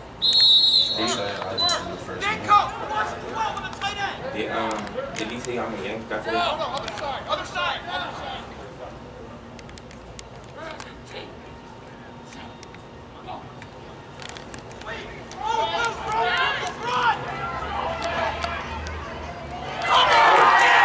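Men and women nearby talk and call out across an open field.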